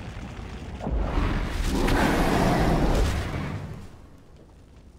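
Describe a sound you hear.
A fiery explosion bursts with a loud roar.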